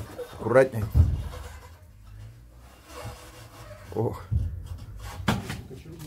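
A wooden board knocks and scrapes against wood.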